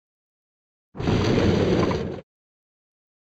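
A heavy door slides open with a rumble.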